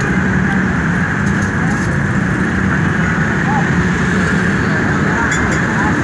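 A minivan engine idles and pulls away close by.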